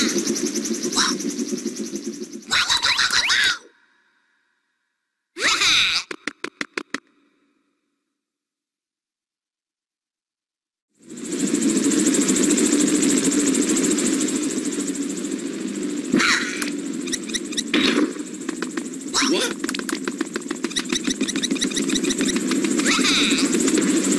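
Short chiming game sound effects ring out.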